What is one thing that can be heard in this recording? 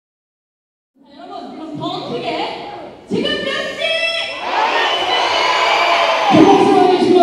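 A young woman sings through a microphone on a loudspeaker.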